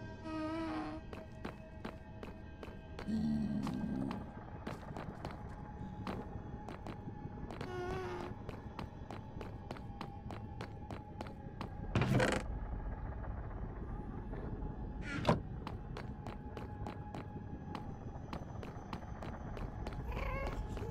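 Footsteps tap quickly and steadily on hard stone.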